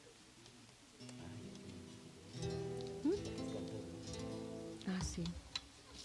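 Guitars strum a tune through loudspeakers.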